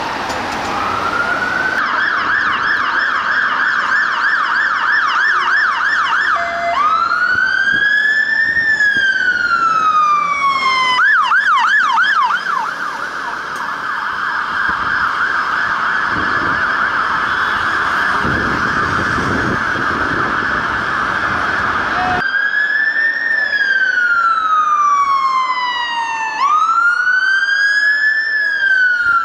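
A fire engine siren wails loudly, switching between fast yelps and slow rising and falling wails.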